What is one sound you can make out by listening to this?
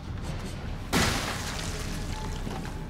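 A gunshot cracks sharply.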